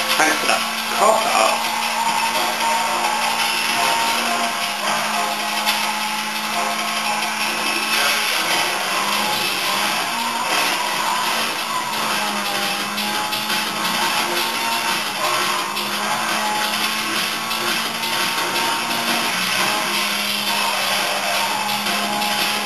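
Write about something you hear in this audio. A racing car engine roars steadily at high speed from a television.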